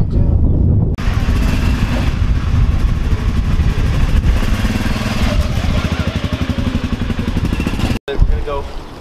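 A utility vehicle engine rumbles as it drives slowly past close by.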